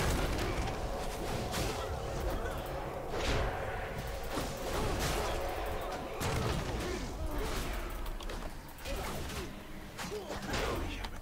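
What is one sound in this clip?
Weapons clash and spells burst in a fast fight.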